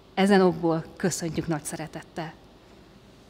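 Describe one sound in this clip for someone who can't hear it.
A woman speaks through a microphone in an echoing hall.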